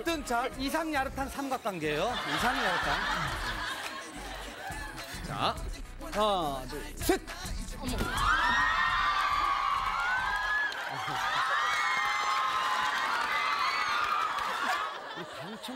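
Young men laugh heartily.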